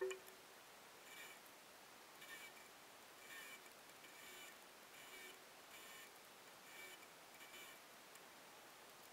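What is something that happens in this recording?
A sewing machine runs in short, repeated bursts.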